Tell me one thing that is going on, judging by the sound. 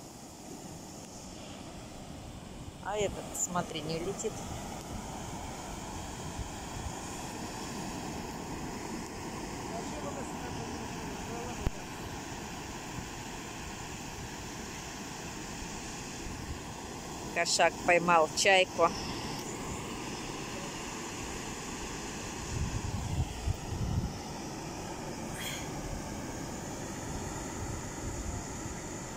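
Waves wash steadily onto a beach.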